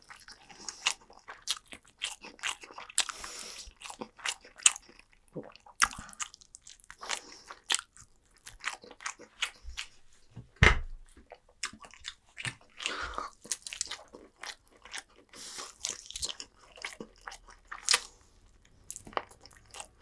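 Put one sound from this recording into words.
A person eats crunchy food close to a microphone, with loud chewing and crunching.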